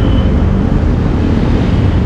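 A small motorcycle engine buzzes past close by.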